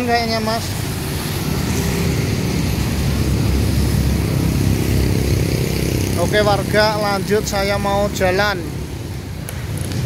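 Traffic rumbles past on a wet road.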